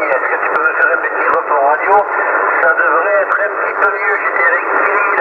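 A radio receiver plays a narrow, crackly transmission through its loudspeaker.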